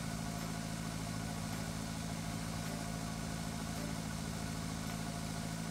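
A tractor engine hums steadily at low speed.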